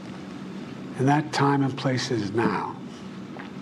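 An elderly man speaks calmly and solemnly into a microphone.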